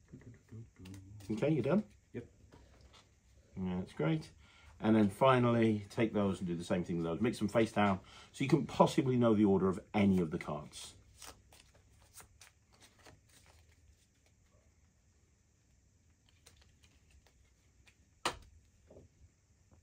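Playing cards flick and slide on a felt mat.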